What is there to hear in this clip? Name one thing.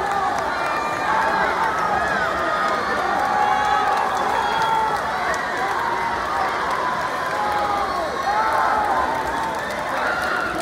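A crowd cheers and shouts loudly in a large echoing hall.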